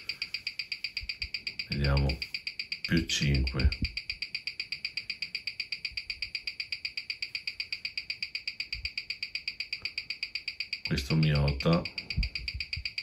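A watch ticks rapidly and steadily through an amplifier.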